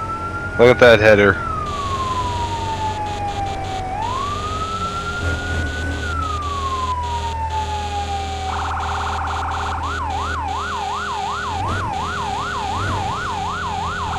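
A siren wails, rising and falling slowly, then switches to a fast yelp.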